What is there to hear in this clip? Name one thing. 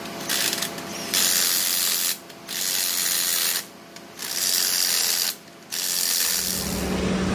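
A power impact driver whirs in short, loud bursts.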